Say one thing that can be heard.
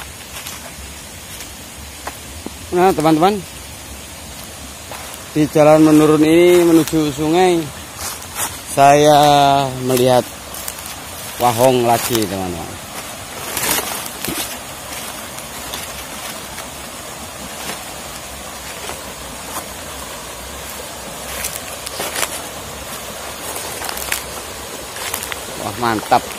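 A stream rushes and burbles over rocks nearby.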